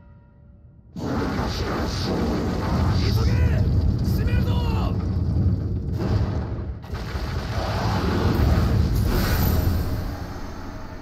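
A giant serpent creature crashes through the ground with a deep rumble.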